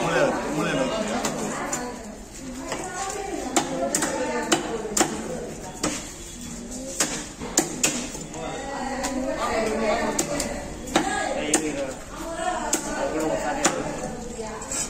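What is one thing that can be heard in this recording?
A knife chops on a wooden block with sharp knocks.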